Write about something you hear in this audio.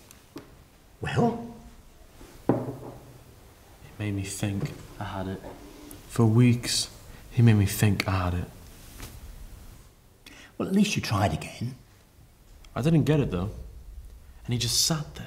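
An older man speaks calmly, close by.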